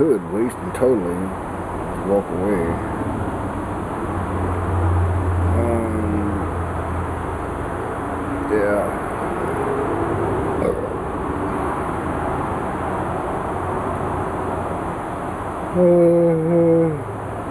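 A middle-aged man talks calmly and close by, with pauses.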